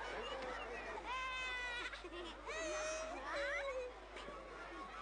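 Young boys shout and laugh loudly close by.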